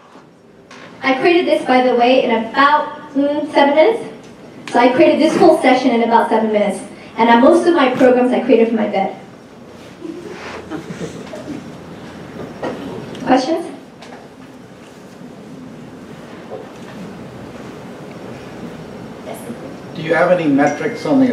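A young woman speaks into a microphone, heard over loudspeakers in an echoing hall.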